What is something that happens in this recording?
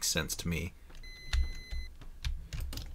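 An oven timer beeps with a steady high tone.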